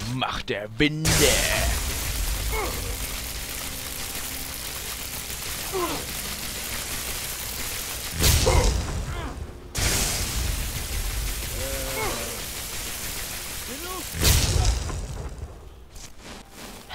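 Electricity crackles and buzzes loudly.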